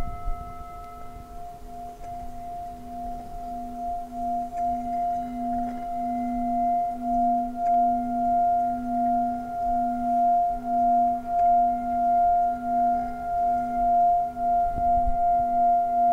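A mallet rubs around the rim of a singing bowl, making a swelling, pulsing hum.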